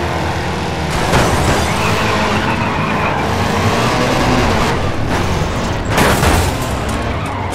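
Cars crash together with a loud metal crunch.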